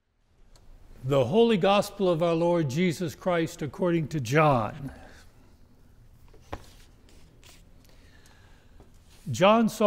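An older man chants aloud in a clear, sung voice, close to a microphone, in a reverberant room.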